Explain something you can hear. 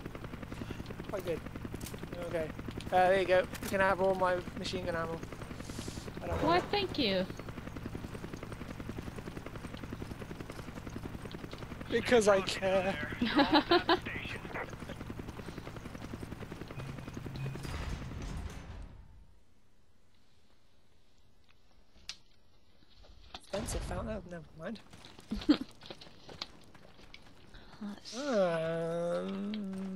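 A young woman talks and laughs with animation into a close microphone.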